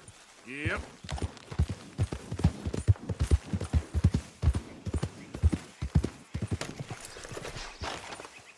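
A horse gallops steadily with hooves thudding.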